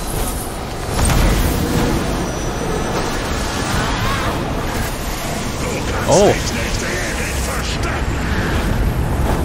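Magic blasts crackle and boom.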